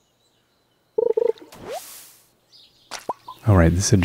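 A fish splashes as it is reeled in.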